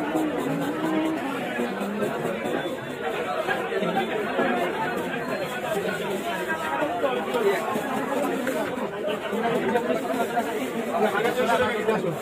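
A knife scrapes scales off a fish with quick, rough strokes.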